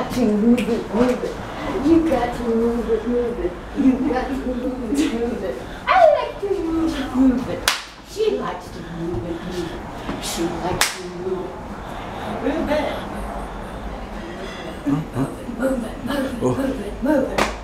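Hands clap in quick bursts.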